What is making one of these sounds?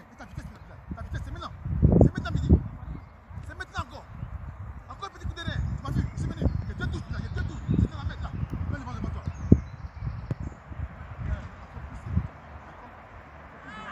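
A ball is kicked with dull thuds on grass.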